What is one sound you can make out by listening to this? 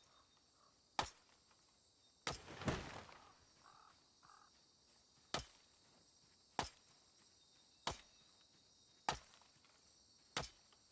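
An axe chops into wood with sharp, regular knocks.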